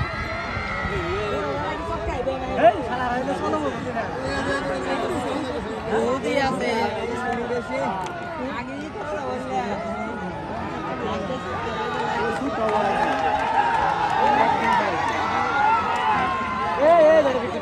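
A large crowd of men chatters and shouts outdoors.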